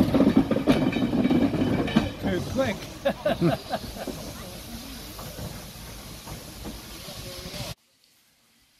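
A steam locomotive puffs and chugs as it pulls away, slowly fading.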